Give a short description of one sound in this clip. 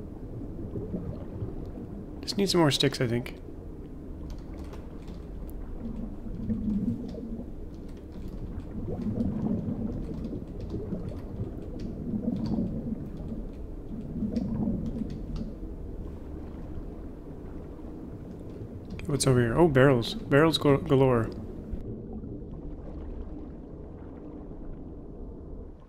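A low, muffled underwater rumble drones steadily.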